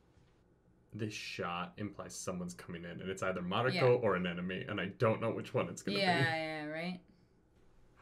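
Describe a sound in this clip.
A woman talks and laughs close to a microphone.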